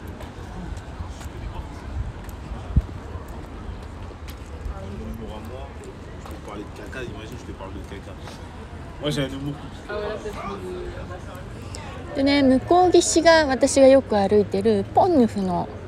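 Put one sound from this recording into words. River water laps gently against a stone embankment.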